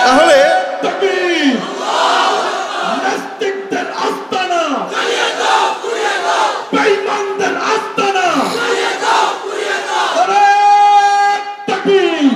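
A young man chants in a melodic, drawn-out voice through a microphone and loudspeakers.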